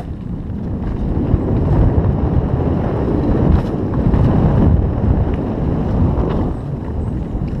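Wind rushes past the rider and buffets the microphone.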